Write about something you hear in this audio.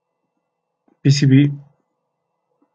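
A man speaks briefly close to a microphone.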